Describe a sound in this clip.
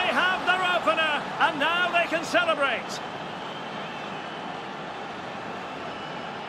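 A large crowd cheers steadily in a stadium.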